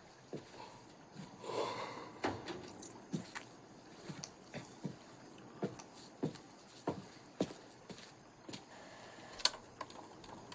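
Footsteps crunch on hard ground.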